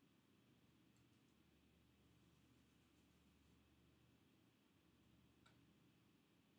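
Light clicks and taps sound faintly on a counter.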